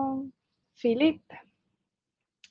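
A young woman speaks brightly through an online call.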